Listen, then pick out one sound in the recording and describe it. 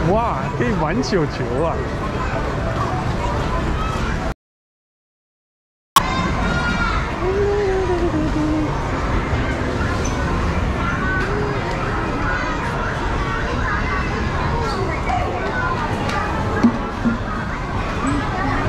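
Arcade machines play electronic jingles and music.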